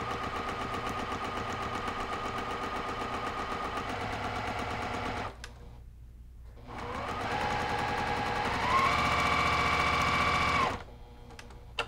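A sewing machine whirs as it stitches rapidly.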